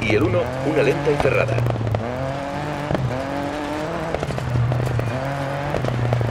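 Gravel crunches and sprays under a car's tyres.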